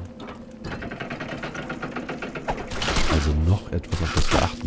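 A heavy iron gate grinds and rattles open.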